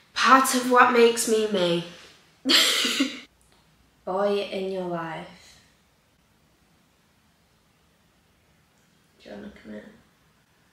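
A young woman talks casually and close to the microphone.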